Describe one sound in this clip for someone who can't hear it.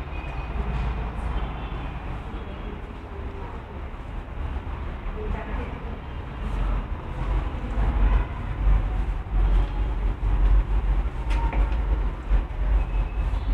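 Footsteps climb stone stairs in a narrow stairwell.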